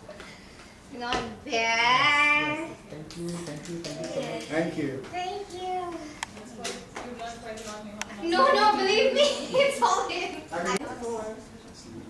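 A young woman laughs excitedly close by.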